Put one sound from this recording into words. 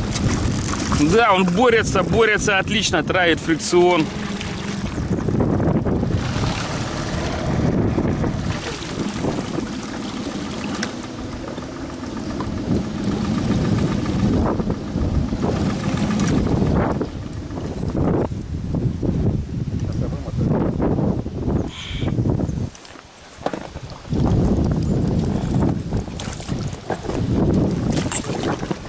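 Water rushes and splashes against a small boat.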